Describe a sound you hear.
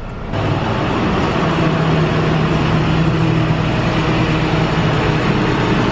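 A lift machine's engine hums steadily outdoors nearby.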